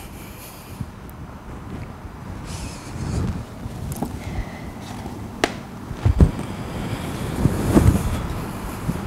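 A person shifts softly on a floor mat.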